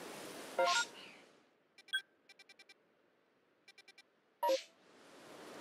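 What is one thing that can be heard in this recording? Short electronic chimes and beeps sound from a game menu.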